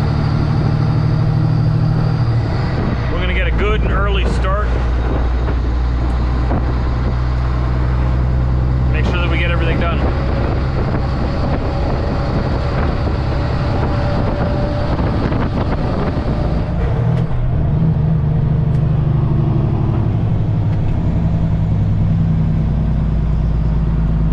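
A truck engine drones steadily inside the cab.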